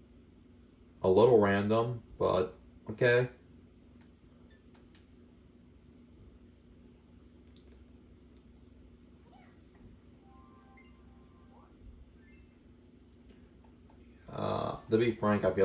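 Short video game jingles and sound effects play from a television.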